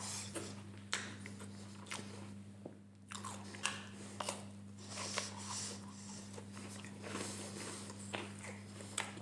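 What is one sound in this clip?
A man chews crunchy food close to a microphone.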